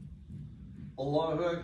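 A man begins chanting loudly into a microphone.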